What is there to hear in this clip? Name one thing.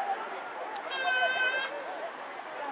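A referee's whistle blows a short wavering blast.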